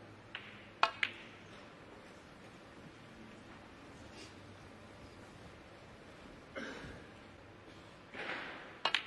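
Snooker balls knock together with a click.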